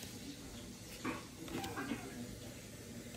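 A card slides and scrapes on a wooden table.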